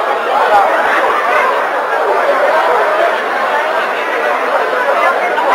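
A large crowd of men and women talk and shout all at once, in a large echoing hall.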